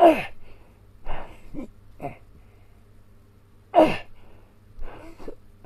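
A middle-aged man grunts and strains loudly in short bursts, close by.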